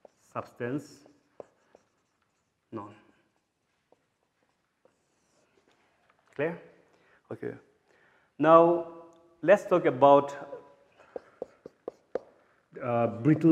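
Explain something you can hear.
A man speaks calmly, pausing often between phrases.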